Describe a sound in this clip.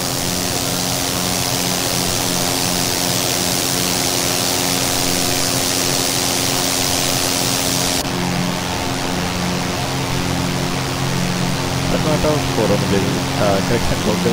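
A small propeller engine drones steadily.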